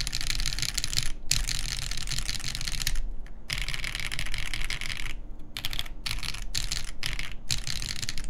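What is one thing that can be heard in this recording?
Keyboard keys clack rapidly in a fast, steady typing rhythm.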